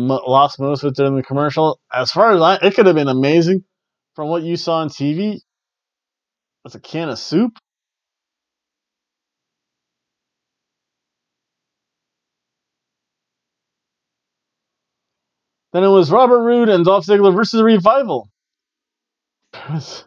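A man talks calmly into a close microphone, with pauses.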